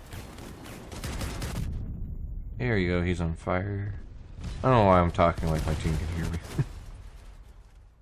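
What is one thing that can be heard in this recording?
Loud explosions boom and crackle.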